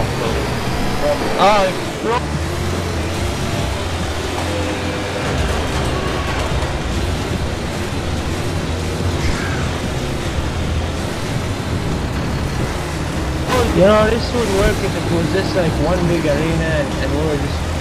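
A heavy vehicle engine roars steadily.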